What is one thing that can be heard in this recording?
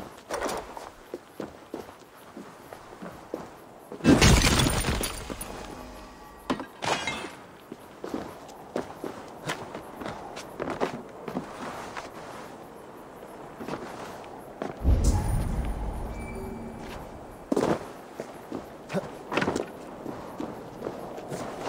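Footsteps scuff on rock.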